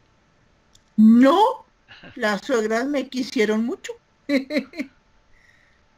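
An older woman speaks with animation over an online call.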